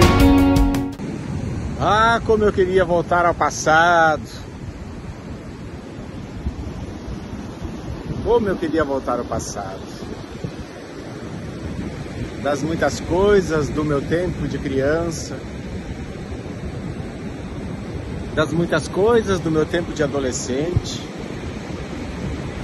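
Waves wash onto a beach nearby.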